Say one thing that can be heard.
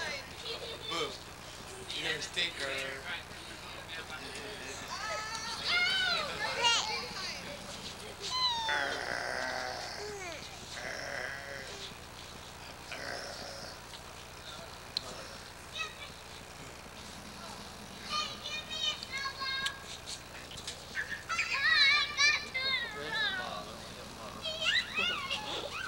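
A baby babbles and squeals happily up close.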